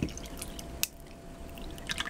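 Coffee pours over ice in a cup.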